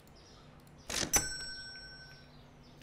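A cash register beeps.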